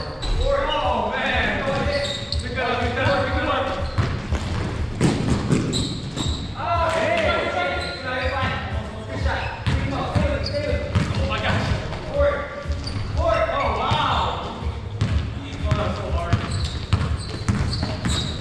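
Footsteps thud as players run across the court.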